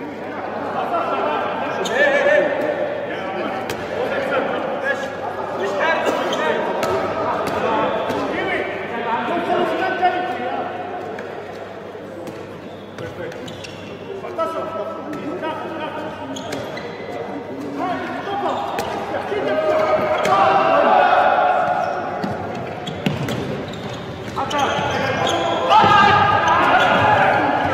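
A ball bounces on a hard floor in a large echoing hall.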